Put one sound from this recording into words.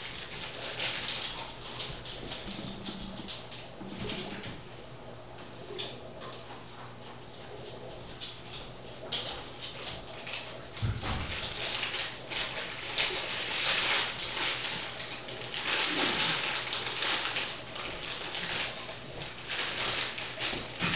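Paper rustles and crinkles as a person handles a sheet.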